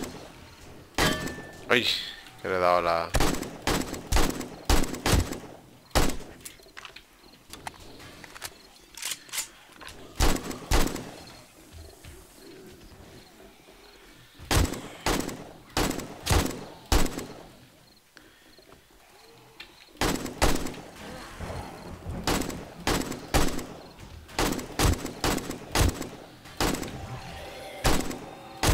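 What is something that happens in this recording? Rifle shots ring out again and again, sharp and loud.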